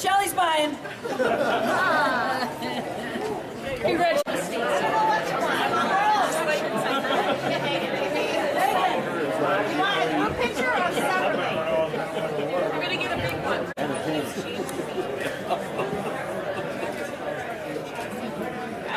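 A crowd of adults chatters all around.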